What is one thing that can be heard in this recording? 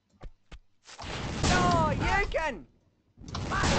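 A cartoon character is struck with a zapping hit sound.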